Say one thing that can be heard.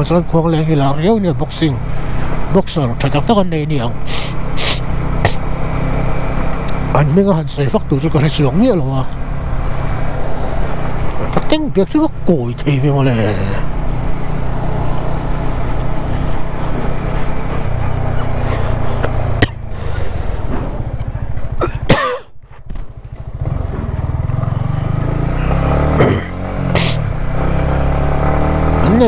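A motorcycle engine rumbles and revs up and down as it rides.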